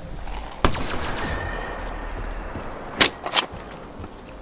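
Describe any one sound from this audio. A gun fires in short loud bursts.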